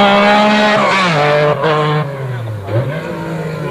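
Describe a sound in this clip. A Metro 6R4 rally car's V6 engine drops in pitch as the driver brakes and downshifts for a bend.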